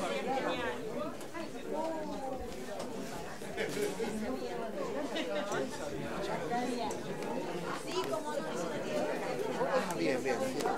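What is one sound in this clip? A crowd of men and women murmurs and chatters nearby in a room.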